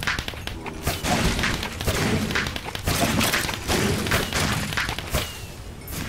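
A firework explodes with a loud bang.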